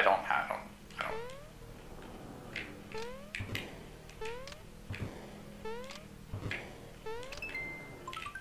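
Short rising electronic blips from a video game repeat at a steady pace.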